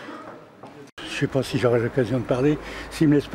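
An elderly man speaks calmly into microphones close by.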